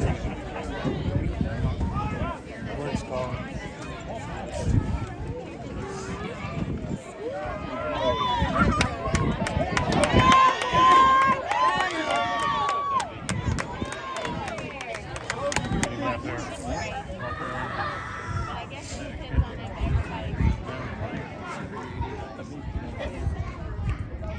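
Adult spectators talk nearby outdoors.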